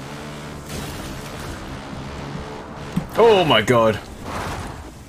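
A quad bike engine roars and revs.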